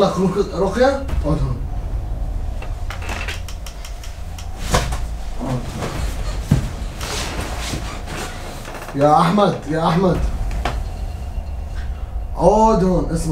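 A young man talks loudly with animation, close by.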